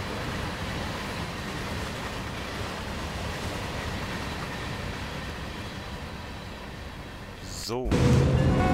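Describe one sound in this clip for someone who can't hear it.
A freight train rumbles past on the tracks.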